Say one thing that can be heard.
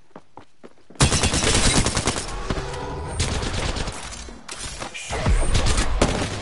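Rapid gunshots crack loudly in quick bursts.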